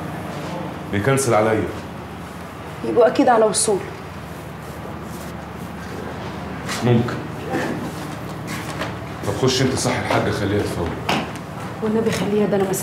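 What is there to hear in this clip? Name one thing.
A man speaks in a room.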